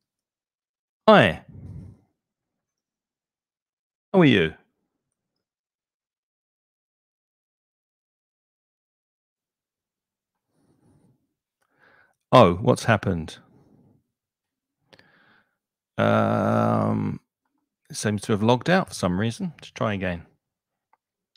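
A middle-aged man speaks through a microphone in short bursts, with pauses.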